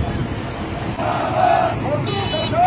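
A crowd of men chants loudly outdoors.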